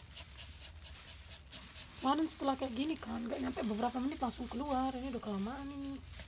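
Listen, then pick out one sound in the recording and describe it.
A plastic glove rustles softly against fur.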